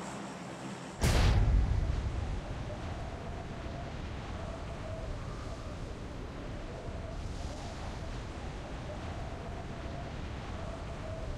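Wind rushes loudly.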